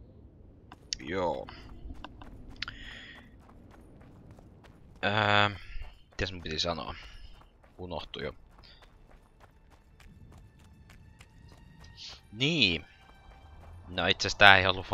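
Footsteps crunch softly on grass and gravel.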